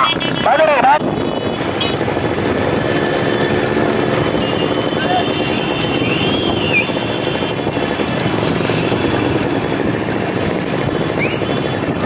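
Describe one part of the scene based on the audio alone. Many motorcycle engines drone as the motorcycles ride along together.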